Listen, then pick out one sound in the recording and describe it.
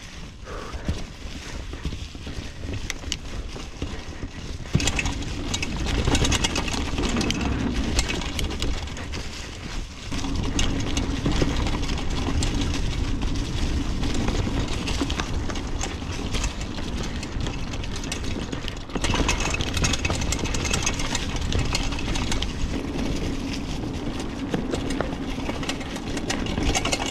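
Wind rushes past, rumbling loudly.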